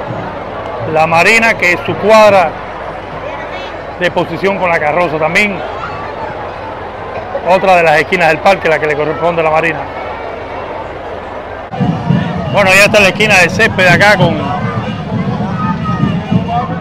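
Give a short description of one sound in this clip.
A crowd of men and women talks and calls out nearby.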